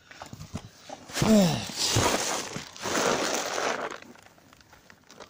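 Plastic bags rustle and crinkle close by.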